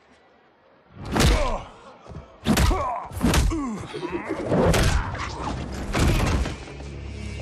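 Heavy blows land in a fight.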